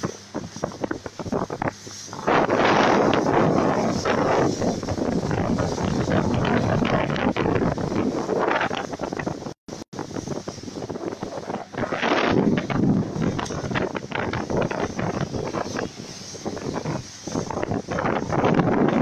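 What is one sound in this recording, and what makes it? Wind blows hard and buffets loudly.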